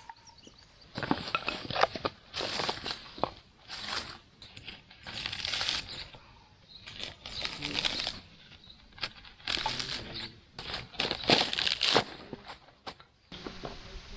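A blade chops hard into a coconut husk with repeated thuds.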